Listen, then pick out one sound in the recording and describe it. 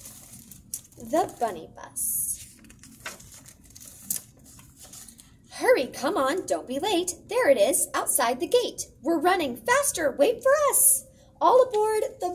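A young woman reads aloud with animation, close to a microphone.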